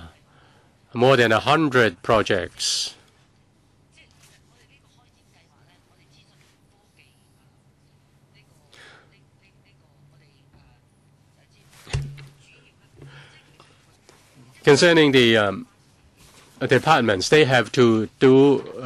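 A middle-aged woman speaks into a microphone in bursts, with pauses between.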